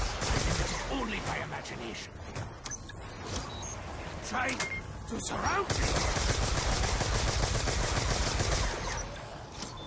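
Guns fire in loud rapid bursts.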